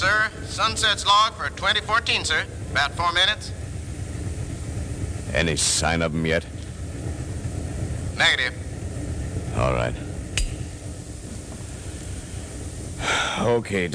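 A man reads out lines through a microphone.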